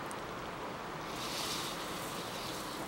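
Sugar pours and hisses onto cherries in a pot.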